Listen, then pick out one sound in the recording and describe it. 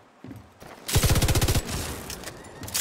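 A rifle fires a short burst of shots.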